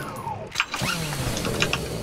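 A chainsaw revs.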